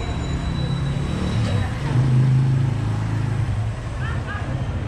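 A motorbike engine hums as it passes close by.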